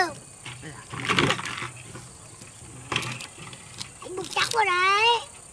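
Empty plastic water jugs bump and knock against a wooden raft.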